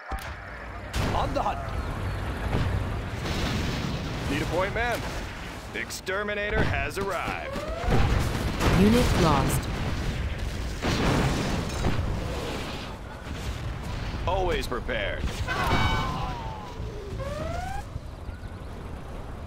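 Gunfire and explosions boom in a battle.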